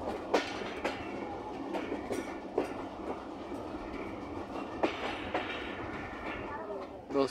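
Train wheels clack over rail joints at an uneven pace.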